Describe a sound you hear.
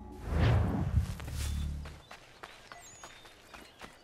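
Footsteps run through rustling undergrowth.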